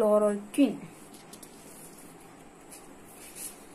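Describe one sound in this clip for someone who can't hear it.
A sheet of paper rustles as it is moved.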